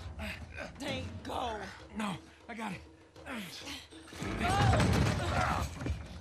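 A woman urges someone on, speaking firmly.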